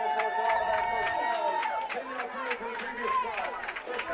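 A man announces over a stadium loudspeaker.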